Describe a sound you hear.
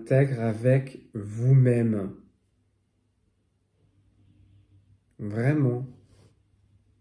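A man speaks calmly and close by in short phrases.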